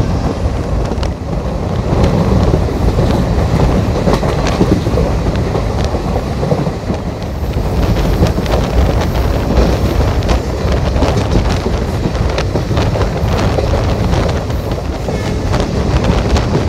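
A train rumbles and rattles steadily along the tracks.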